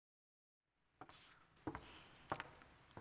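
A woman's footsteps sound on a stage.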